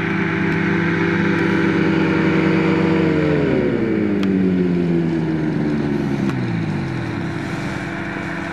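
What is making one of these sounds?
A small aircraft engine drones loudly, then winds down as it slows.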